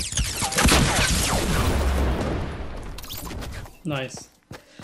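An explosion booms and roars, then slowly dies away.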